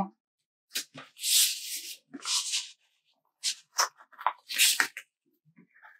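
A sheet of paper stickers rustles and crinkles as hands handle it.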